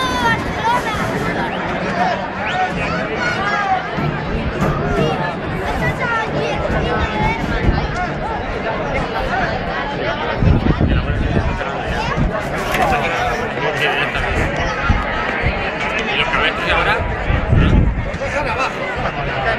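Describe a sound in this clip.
A large outdoor crowd chatters and shouts throughout.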